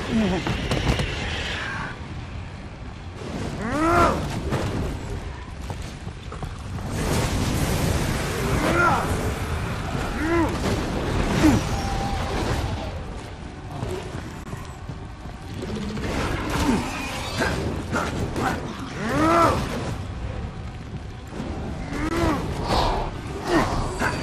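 Fire bursts with a roaring whoosh.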